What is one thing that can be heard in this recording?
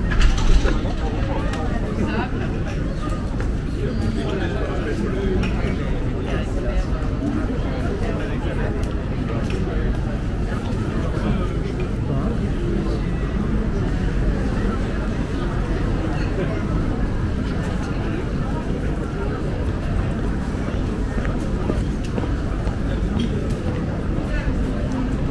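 Men and women chatter nearby outdoors.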